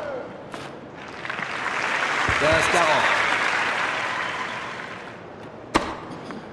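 A crowd cheers and applauds loudly, then fades away.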